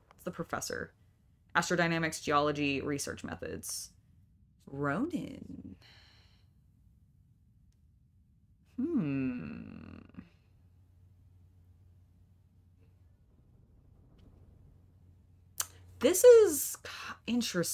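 A young woman talks casually and with animation into a microphone, close by.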